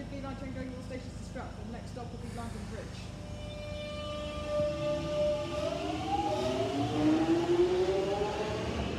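An underground train rumbles past on its rails.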